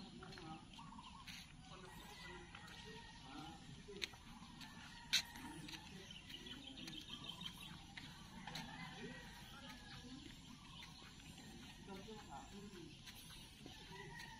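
Footsteps scuff slowly on a paved path outdoors.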